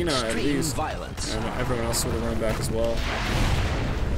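A magic blast bursts with a loud whoosh in a video game.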